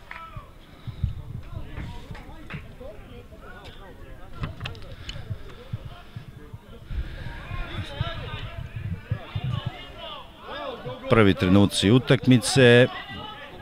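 Spectators talk and call out from nearby stands outdoors.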